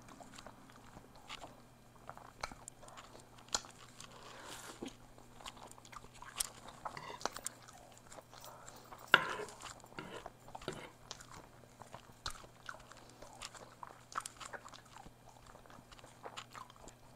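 A woman chews and slurps noodles close to a microphone.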